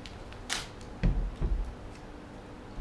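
Hands knock on a wooden desk with dull thumps.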